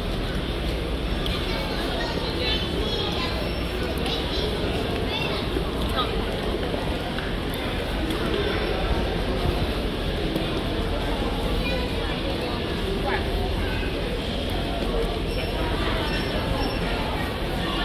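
Luggage trolleys rattle as they roll across a hard floor.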